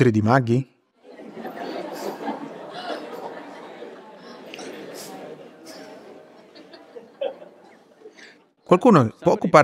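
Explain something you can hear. A small group of people laughs.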